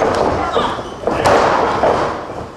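A wrestler slams down onto a wrestling ring canvas with a heavy thud.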